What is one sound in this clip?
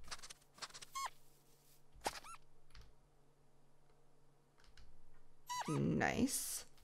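A fox gives short high squeaks.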